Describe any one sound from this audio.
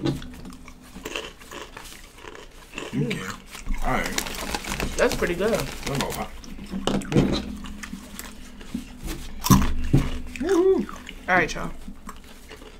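Paper crinkles and rustles as it is unwrapped.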